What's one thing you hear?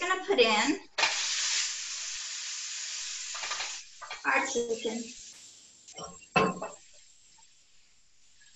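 Meat sizzles loudly as it hits a hot pan.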